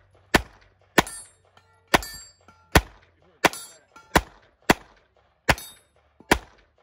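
Bullets ring off steel targets.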